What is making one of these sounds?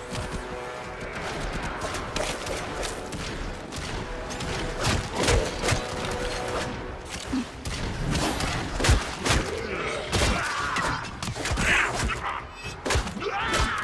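Metal blades clash and swoosh in melee strikes.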